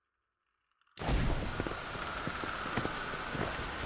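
A horse gallops along a dirt path, hooves thudding rhythmically.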